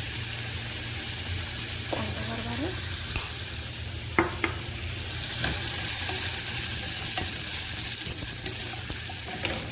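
Food sizzles softly in a pot.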